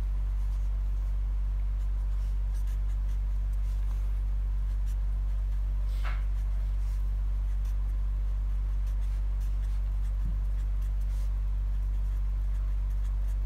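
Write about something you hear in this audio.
A marker pen scratches softly on paper.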